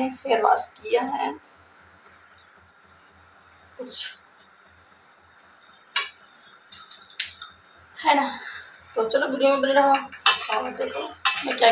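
A young woman talks close by in short bursts.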